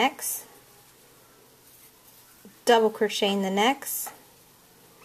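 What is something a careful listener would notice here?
A crochet hook softly pulls yarn through stitches.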